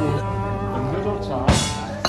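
A man slurps a drink close by.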